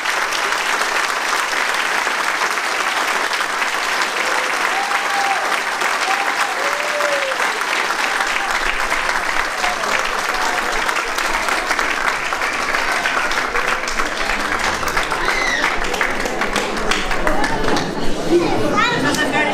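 An audience applauds loudly in a large echoing hall.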